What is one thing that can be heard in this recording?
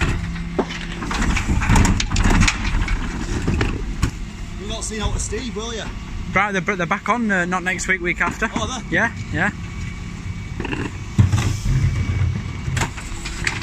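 Plastic wheelie bins clatter and bang against the lift.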